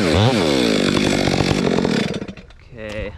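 A chainsaw roars loudly while cutting into wood.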